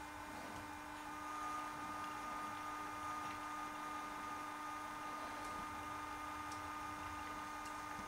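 A model locomotive's motor hums softly as it creeps along the track.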